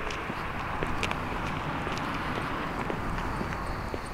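Footsteps of a passer-by on pavement come close and go past.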